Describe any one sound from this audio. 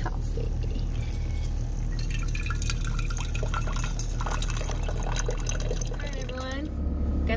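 Water pours steadily into a coffee filter.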